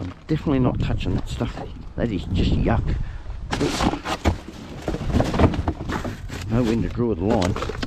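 Cardboard boxes scrape and thump as they are shifted.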